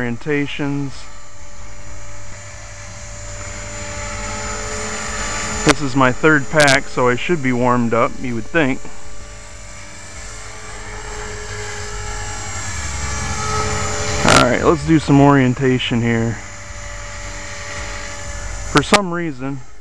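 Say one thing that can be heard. A model helicopter's engine whines steadily overhead, rising and falling as it circles.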